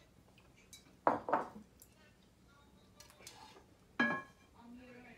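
A glass lid clinks against a plate.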